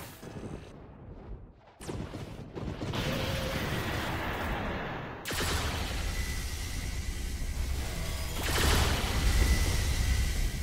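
Game lightning and energy blasts crackle and boom loudly.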